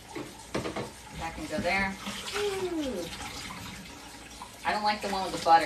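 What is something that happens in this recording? Dishes clink and rub as they are scrubbed in a sink.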